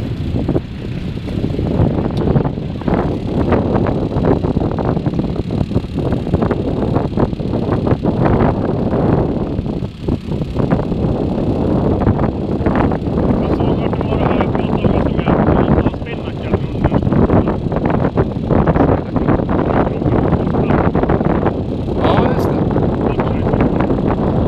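Strong wind buffets loudly outdoors.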